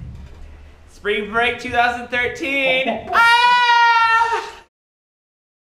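A man shouts and yells loudly nearby.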